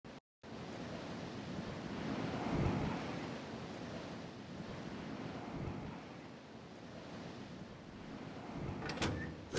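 Wind rushes steadily past during a gliding descent.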